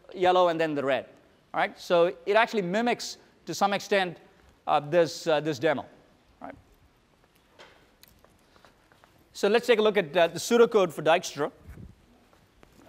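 A man lectures with animation through a microphone.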